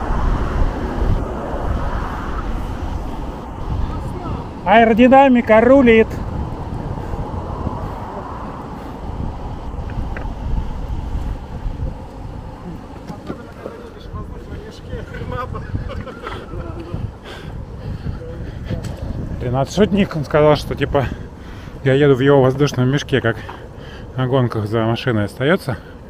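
Skateboard wheels roll and rumble steadily on pavement.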